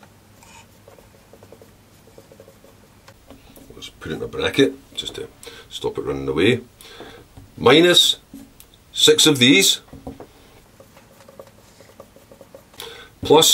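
A marker squeaks and scratches across paper.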